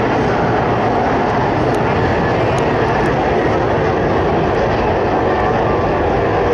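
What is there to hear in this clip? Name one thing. Racing powerboat engines roar loudly across open water.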